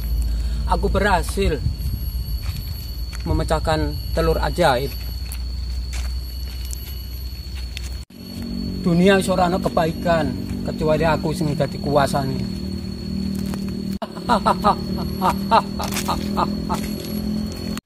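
An elderly man speaks with animation outdoors, close by.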